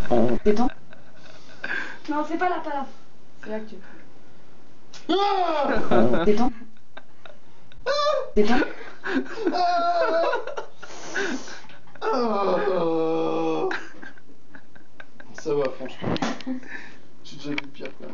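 A young man laughs nearby.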